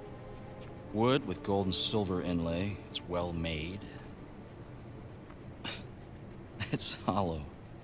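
A young man speaks quietly and thoughtfully.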